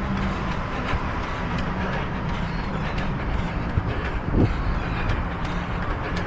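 Footsteps tap steadily on a pavement.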